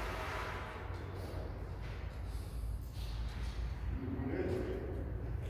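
A brass band plays together in a large echoing room.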